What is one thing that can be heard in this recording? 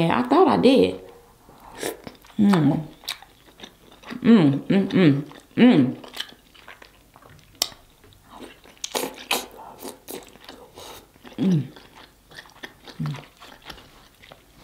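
A young woman chews and slurps food wetly close to a microphone.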